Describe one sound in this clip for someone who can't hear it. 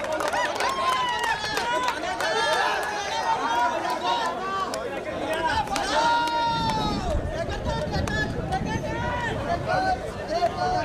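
A crowd of men cheers and shouts excitedly outdoors.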